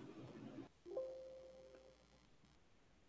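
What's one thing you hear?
A computer plays a short alert chime.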